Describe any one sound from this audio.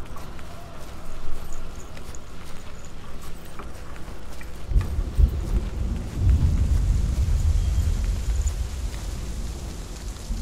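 Footsteps crunch on gravel and rocks.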